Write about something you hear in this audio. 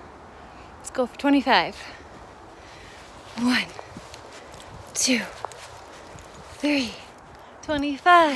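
A young woman speaks with animation close by, in short bursts.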